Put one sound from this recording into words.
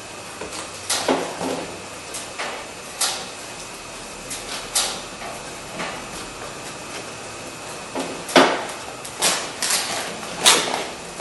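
Plastic sheeting crinkles and rustles as it is peeled from a car door.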